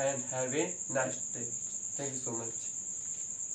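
A young man speaks calmly and clearly, close to a microphone.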